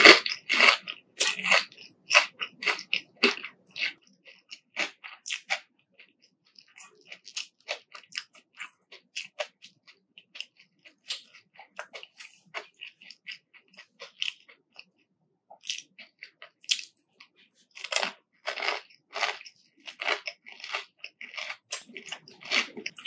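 A young woman chews crunchy fried food close to a microphone, with loud crisp crunches.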